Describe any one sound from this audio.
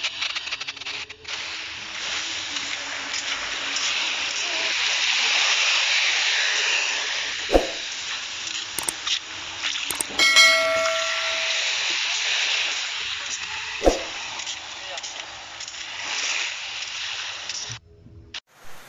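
Small waves lap onto a sandy beach.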